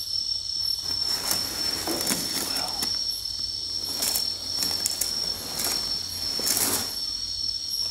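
A plastic bag rustles as things are moved through it.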